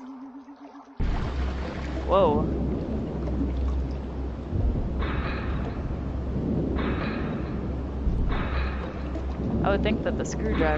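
Water rumbles and bubbles steadily.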